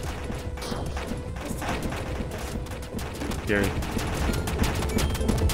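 Rapid video game blasts and hits thump and crackle.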